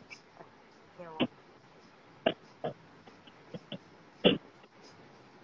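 A young woman speaks in short, quiet bursts over a phone connection.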